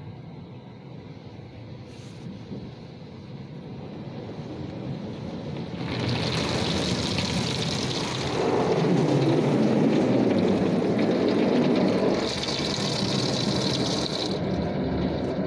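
Water sprays and drums against a car's windows, heard from inside.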